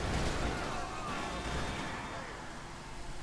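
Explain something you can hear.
A car crashes and tumbles nearby.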